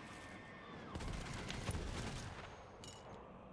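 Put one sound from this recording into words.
Rapid gunfire crackles in a burst.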